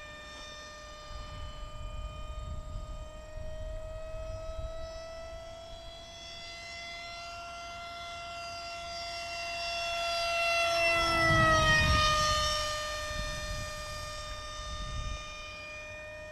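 Wind rumbles in gusts over the microphone.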